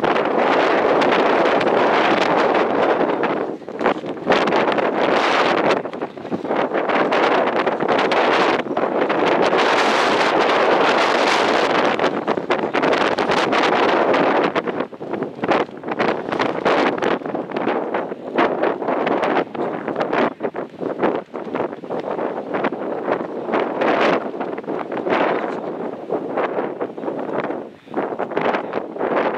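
Strong wind blows and buffets outdoors.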